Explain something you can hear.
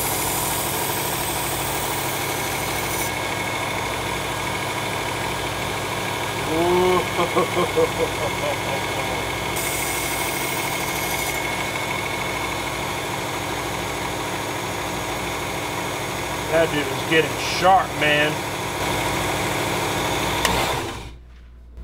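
An electric knife sharpener hums steadily.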